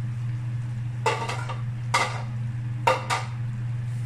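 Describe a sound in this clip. A spoon knocks against a bowl a few times.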